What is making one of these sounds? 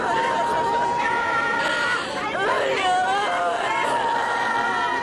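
A young woman wails and sobs in distress.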